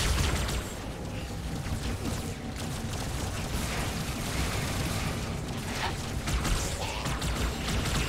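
An energy weapon fires in short bursts.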